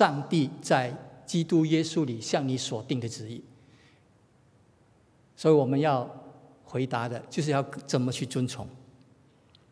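A middle-aged man speaks with animation into a microphone in a large, echoing hall.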